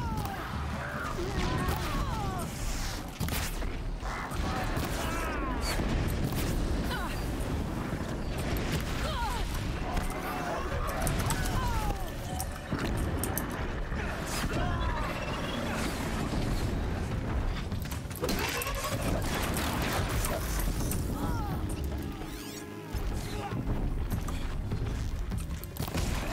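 Arrows whoosh from a bow.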